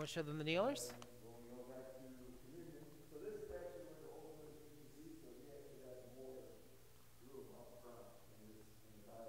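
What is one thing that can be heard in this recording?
A young man speaks calmly, explaining.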